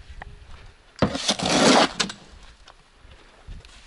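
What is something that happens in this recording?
Sand scrapes and pours from a shovel.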